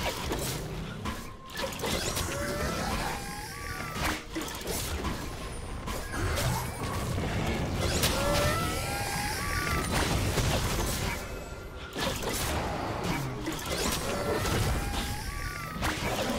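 Game combat sounds of magic blasts and hits crackle and whoosh.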